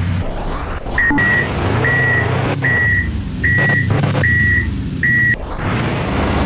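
A reversing alarm beeps repeatedly.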